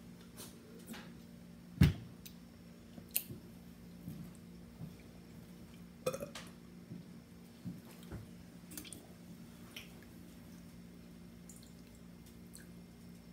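A woman gulps a drink close by.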